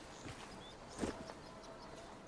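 Something is smashed with a short, loud thud.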